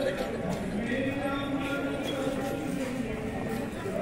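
A crowd of people talks nearby.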